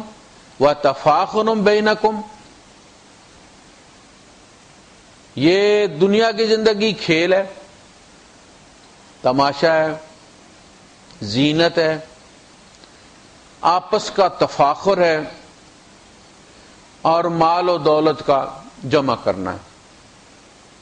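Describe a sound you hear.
A man recites in a melodic chanting voice through a microphone, in phrases with pauses between them.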